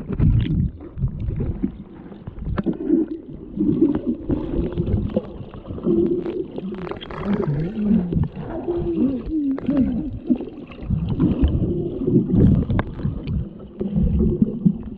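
Water rushes and gurgles around a swimmer underwater.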